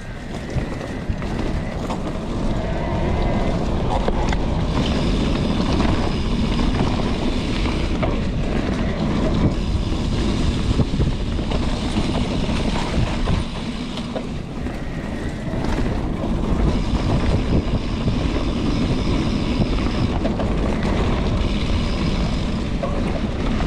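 A bicycle's frame rattles and clatters over bumps.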